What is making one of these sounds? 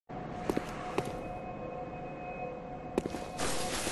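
Footsteps tread slowly on stone.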